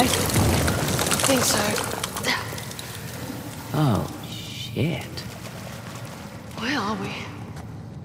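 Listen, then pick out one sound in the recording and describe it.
A young woman asks and talks calmly.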